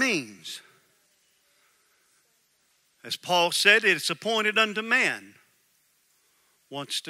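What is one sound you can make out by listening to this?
A middle-aged man speaks with animation into a headset microphone, with long pauses.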